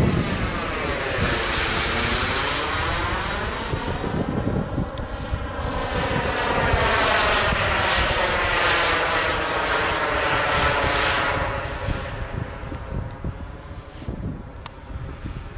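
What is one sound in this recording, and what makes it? Wind buffets outdoors.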